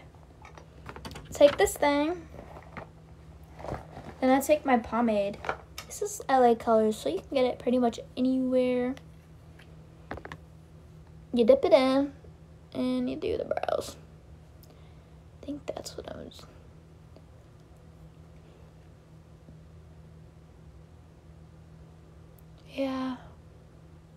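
A young woman talks casually and close by, pausing often.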